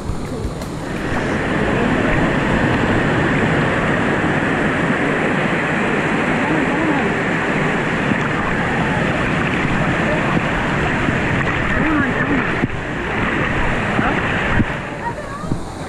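Water roars loudly as it pours from a waterfall close by.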